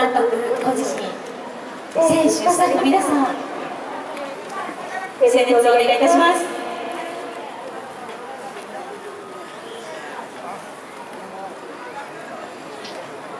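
A large crowd of fans chants and sings loudly in an open stadium.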